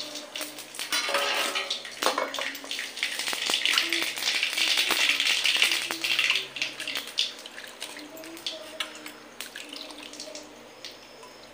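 Hands toss and rustle cut potato pieces in a metal bowl.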